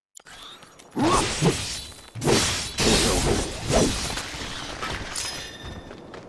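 Loud explosive impacts and crashes ring out.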